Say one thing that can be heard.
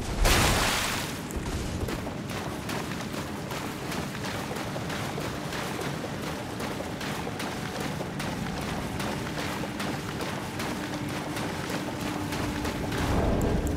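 Footsteps splash steadily through shallow water.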